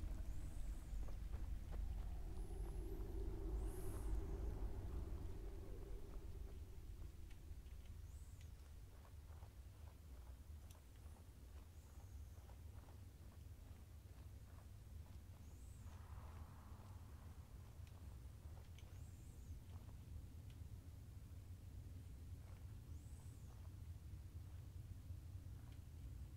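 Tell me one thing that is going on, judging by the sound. Footsteps crunch steadily over dirt and stone.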